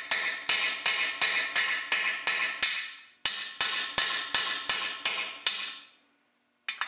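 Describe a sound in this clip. A ratchet wrench clicks rapidly in quick bursts.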